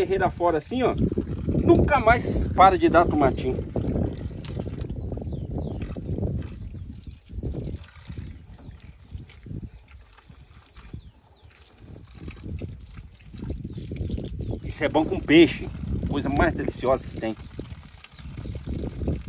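Water runs from a tap and splashes into a bowl.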